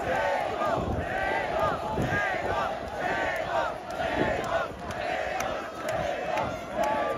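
A large outdoor crowd cheers and shouts loudly.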